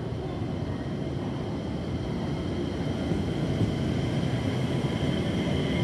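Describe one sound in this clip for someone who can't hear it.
Train brakes squeal with a steady high whine as the train slows.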